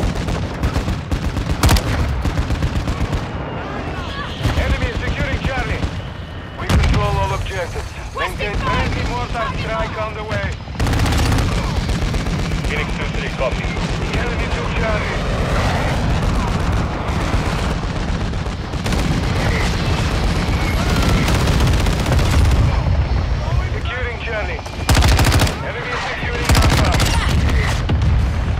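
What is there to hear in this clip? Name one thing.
Rifle shots crack sharply, one after another.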